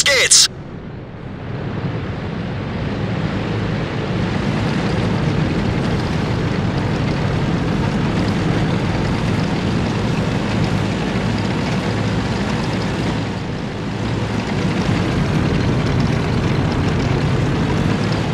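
Tank tracks clank and rattle over the ground.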